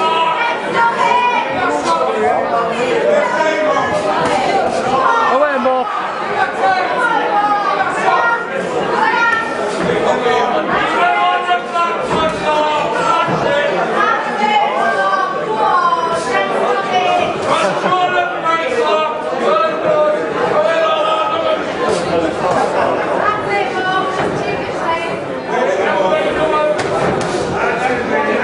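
A crowd of men shouts and cheers loudly in an echoing hall.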